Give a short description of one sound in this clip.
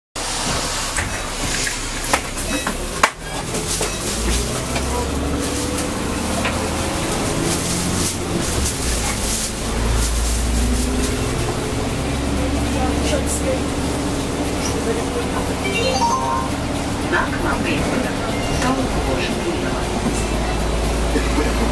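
Loose fittings inside the bus rattle and knock.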